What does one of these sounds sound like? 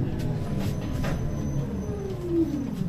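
A tram's electric motor whines, rising in pitch near the end.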